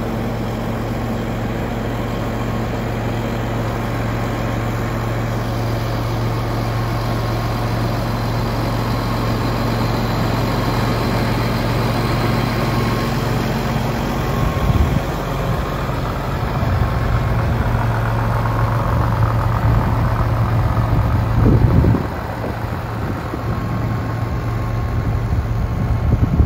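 A large tractor engine idles with a steady low rumble close by.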